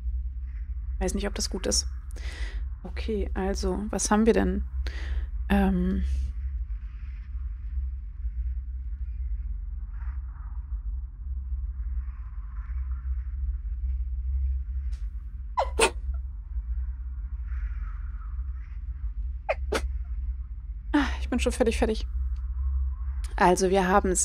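A young woman speaks close to a microphone, with animation, in short bursts.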